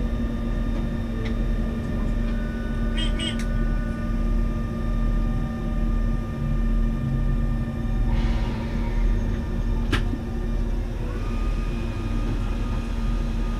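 A train rumbles steadily along the rails with a low hum.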